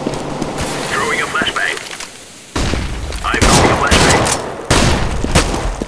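Gunshots echo in a tunnel.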